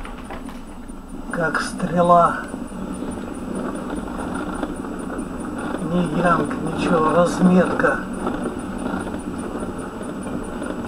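A car engine hums steadily while driving on a road.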